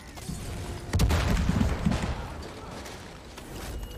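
A tanker truck explodes with a loud boom.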